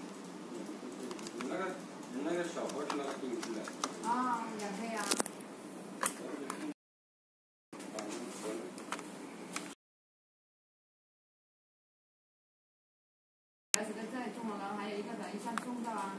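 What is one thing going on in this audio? Buttons on a remote control click softly under a thumb.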